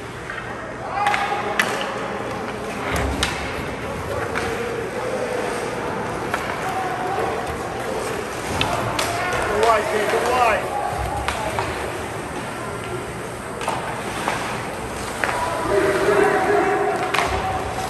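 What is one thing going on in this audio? Young players call out to each other in an echoing rink.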